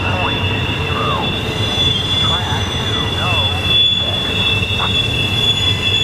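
A long freight train rumbles and clanks past close by.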